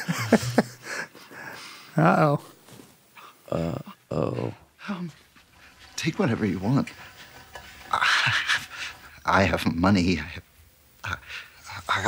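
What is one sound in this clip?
A man speaks tensely and pleadingly close by.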